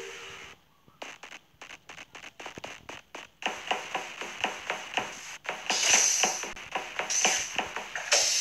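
Quick, light footsteps patter steadily.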